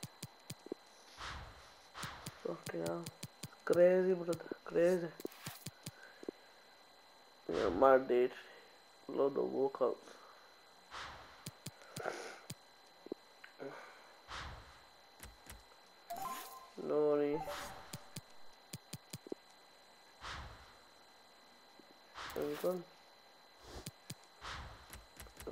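Soft menu clicks tick as options are selected.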